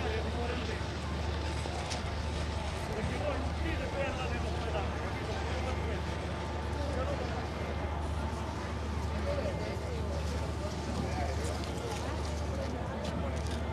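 A ship's engine hums low and steadily.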